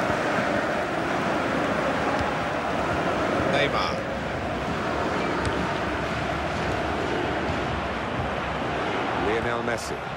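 A stadium crowd roars and chants throughout.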